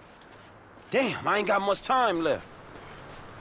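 A man mutters briefly in a gruff voice.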